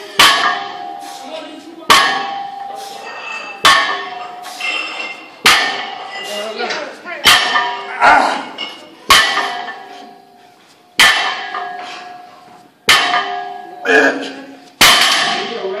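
Heavy weight plates clank and ring against the floor again and again at a steady pace.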